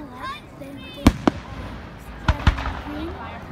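Fireworks burst with sharp bangs.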